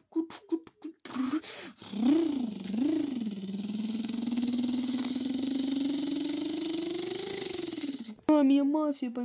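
Cartoonish game sound effects play through a small speaker.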